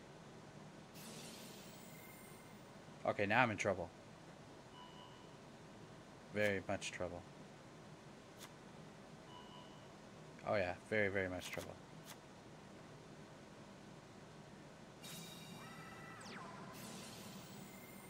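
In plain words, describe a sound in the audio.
A shimmering whoosh sounds as a card flashes up.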